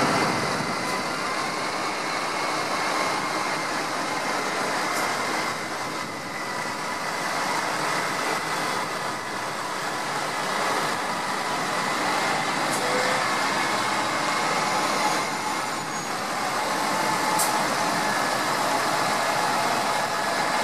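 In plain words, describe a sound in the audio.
Tractor engines rumble steadily as they drive past one after another.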